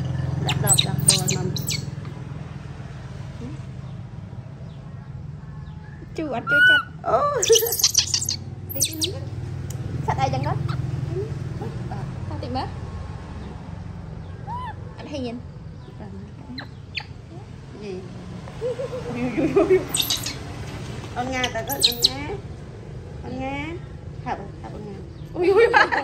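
A baby monkey squeaks and cries in high thin calls.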